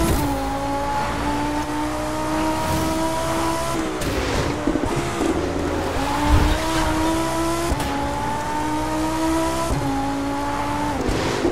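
Tyres hiss over a wet road.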